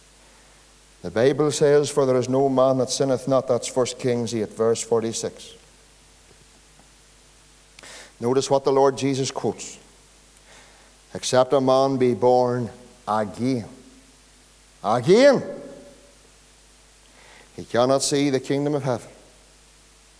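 A man preaches with animation through a microphone, in bursts with pauses.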